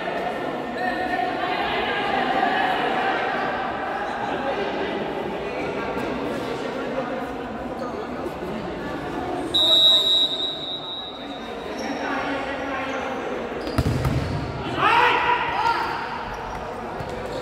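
A crowd of spectators chatters and shouts throughout.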